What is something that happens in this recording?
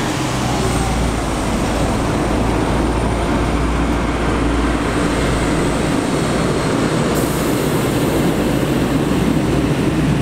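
A heavy truck engine rumbles as it pulls a trailer away.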